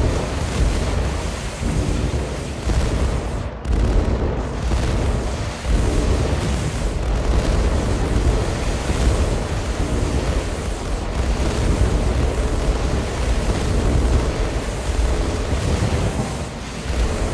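Explosions boom and rumble in a video game battle.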